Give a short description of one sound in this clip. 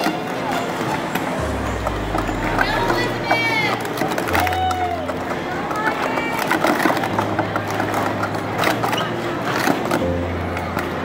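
Plastic cups clatter rapidly as they are stacked and unstacked.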